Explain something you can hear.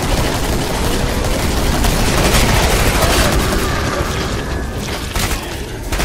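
A rifle fires in rapid shots.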